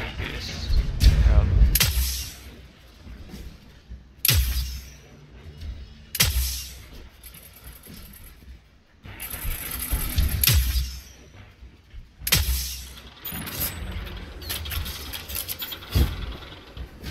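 Sniper rifle shots ring out with loud booming cracks and echoes.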